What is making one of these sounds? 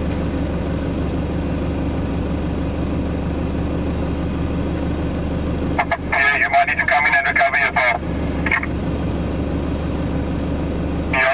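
A vehicle engine rumbles steadily nearby.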